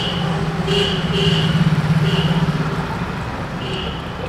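Tea pours and splashes into a metal cup.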